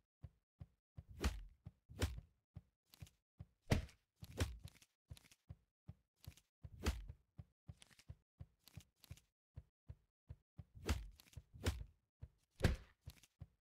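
Coins clink again and again as they are picked up.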